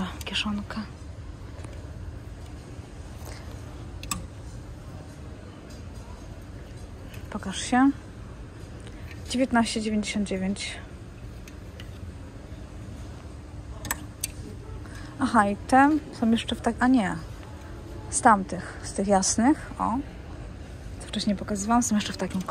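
Clothes hangers scrape and click along a rail.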